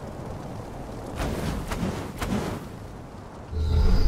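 A fiery explosion booms.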